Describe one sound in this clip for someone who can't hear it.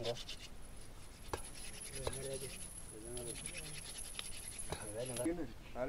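A wooden stick whirs and rubs rapidly against a wooden board.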